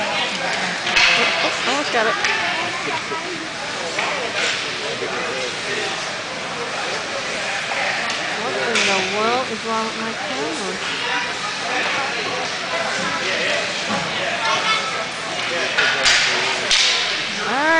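Hockey sticks clack on the ice.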